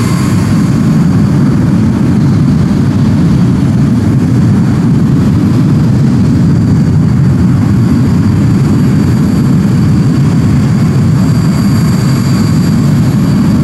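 Jet engines roar steadily as an airliner flies past.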